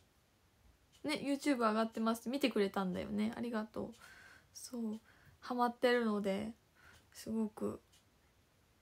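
A young woman speaks close to the microphone with animation.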